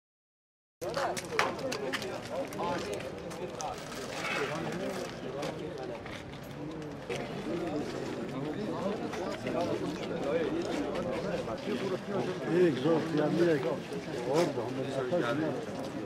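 A crowd of men talks outdoors at a lively, overlapping murmur.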